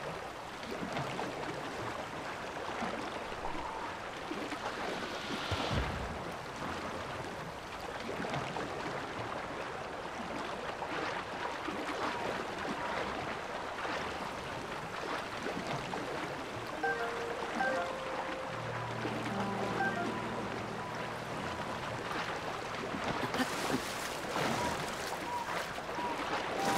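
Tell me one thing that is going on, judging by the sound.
Water rushes and splashes as a swimmer moves through a river.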